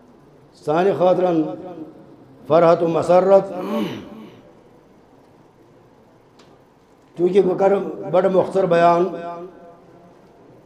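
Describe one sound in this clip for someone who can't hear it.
A middle-aged man speaks calmly into a headset microphone, heard through a loudspeaker, with pauses between phrases.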